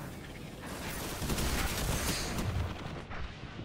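Gunfire blasts in rapid bursts.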